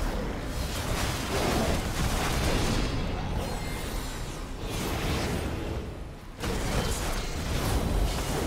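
A man talks close to a microphone.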